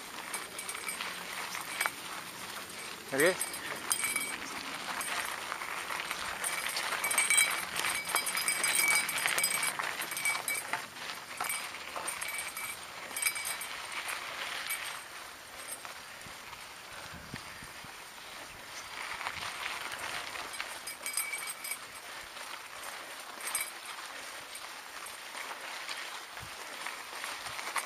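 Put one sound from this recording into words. Bicycle tyres crunch and rattle over a rough gravel track.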